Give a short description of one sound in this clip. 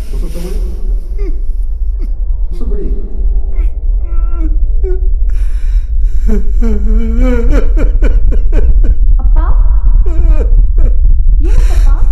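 A middle-aged man sobs and wails up close.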